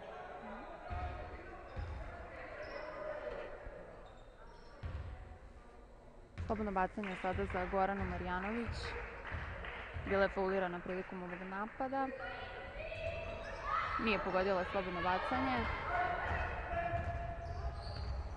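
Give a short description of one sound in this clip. A basketball bounces on a wooden floor with dull thumps.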